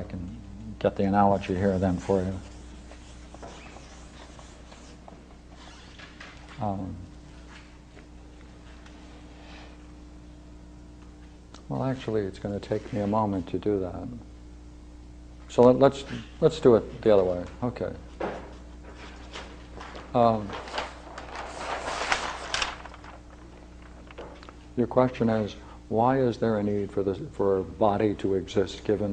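An elderly man lectures calmly, with pauses.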